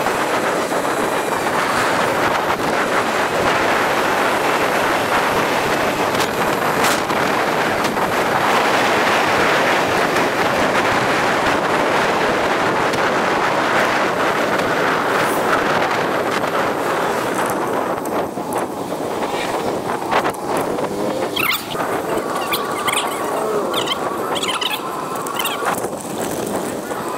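Wind buffets past while riding a bicycle outdoors.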